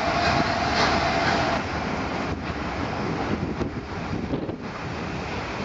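Railway carriages rumble and clatter past on the tracks, close by.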